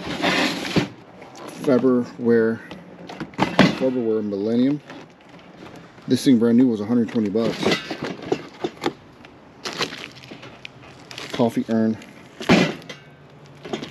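A cardboard box is handled and turned over.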